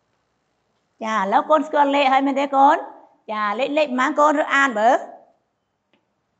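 A woman speaks clearly and closely into a clip-on microphone.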